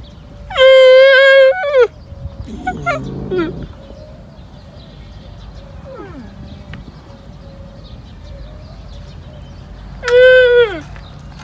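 A young camel bleats loudly and shrilly, close by.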